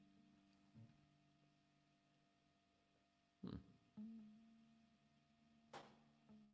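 An acoustic guitar is strummed, and its chords ring on.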